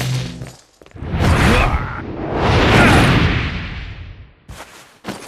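A heavy body tumbles and thuds onto a metal floor.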